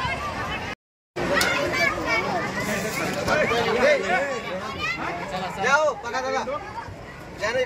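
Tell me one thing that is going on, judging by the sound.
Several men talk loudly and excitedly over one another close by.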